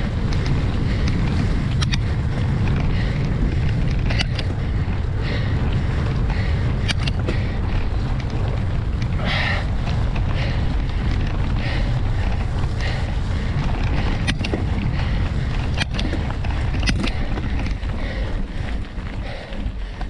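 Bicycle tyres roll and crunch over a dirt and leaf-covered trail.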